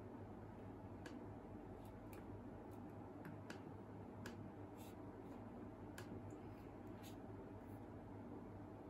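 Fingers tap softly on a laptop keyboard.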